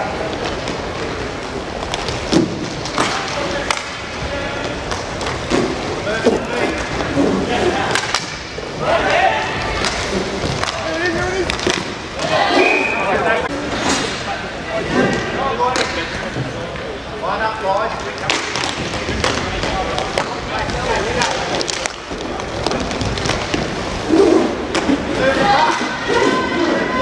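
Spectators chatter and call out throughout a large echoing hall.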